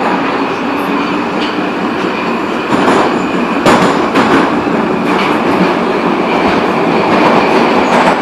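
A subway train rumbles and rattles loudly along the tracks.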